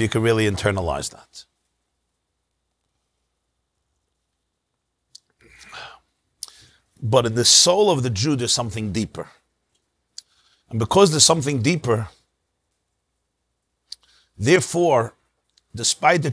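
A middle-aged man speaks calmly into a close microphone, in pauses.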